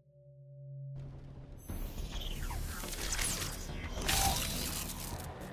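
Icy magic whooshes and crackles.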